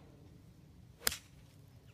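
A driver strikes a golf ball with a sharp crack.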